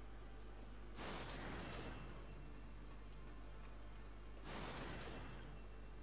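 A rushing whoosh sweeps past twice.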